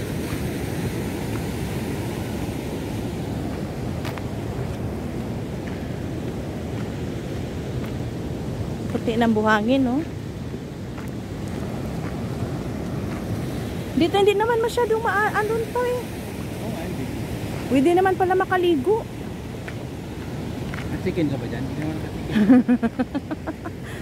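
Small waves wash and splash against rocks along a shore.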